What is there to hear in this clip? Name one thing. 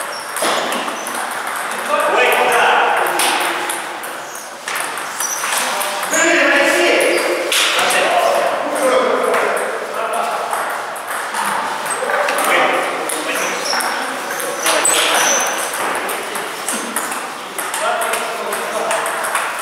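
A table tennis ball clicks against paddles and bounces on the table in an echoing room.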